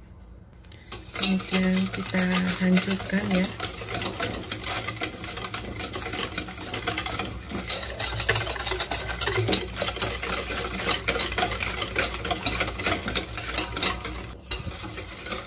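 A wire whisk beats rapidly against a metal bowl, clinking and rattling.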